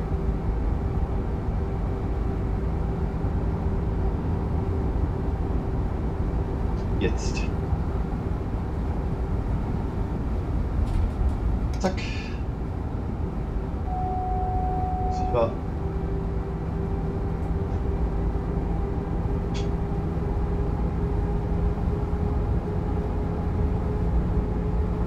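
An electric train hums and rumbles steadily along the rails.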